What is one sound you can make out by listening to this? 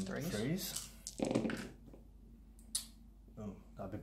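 Plastic dice clatter as they are thrown onto a hard surface.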